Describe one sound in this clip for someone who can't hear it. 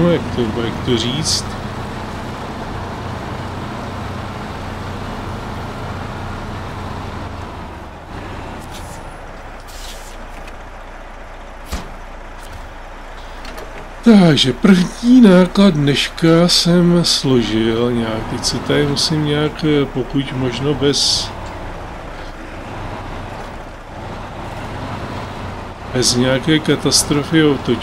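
A heavy truck engine rumbles low as the truck drives along.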